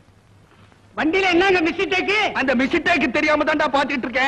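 A man sings loudly and expressively.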